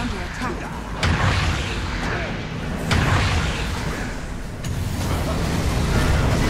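Fiery magic blasts burst and roar.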